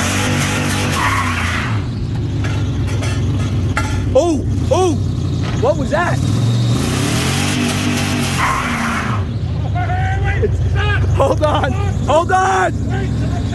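Tyres spin and squeal on pavement.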